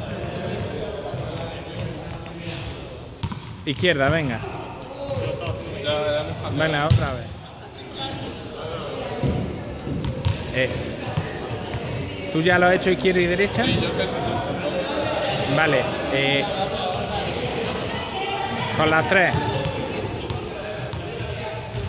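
A young man talks with animation in a large echoing hall.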